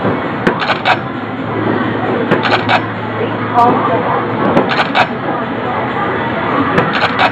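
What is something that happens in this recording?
Upbeat dance music plays loudly through loudspeakers with a punchy beat.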